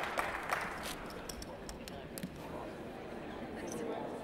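Poker chips click and clack on a table.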